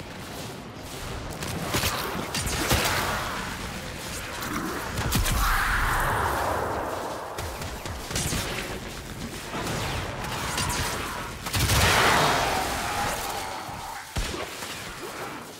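A sword slashes and clangs in rapid swings.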